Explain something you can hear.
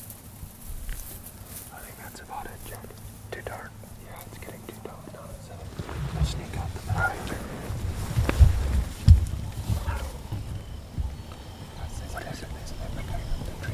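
A man whispers quietly nearby.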